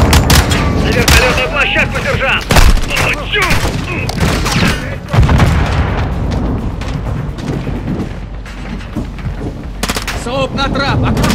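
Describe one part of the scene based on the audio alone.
A rifle fires in rapid bursts of sharp shots.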